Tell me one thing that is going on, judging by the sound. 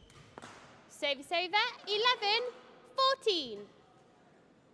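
A young woman shouts loudly.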